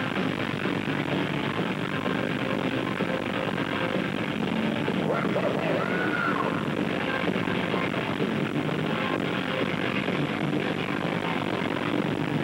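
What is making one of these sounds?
A crowd cheers and shouts around the microphone.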